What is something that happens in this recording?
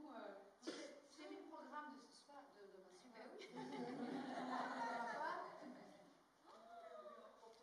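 Women speak and call out with animation in a large echoing hall.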